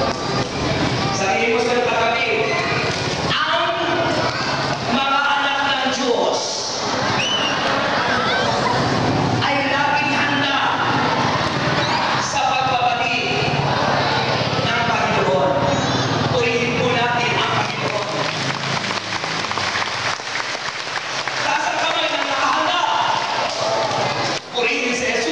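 A man speaks with animation through a loudspeaker in a large echoing space.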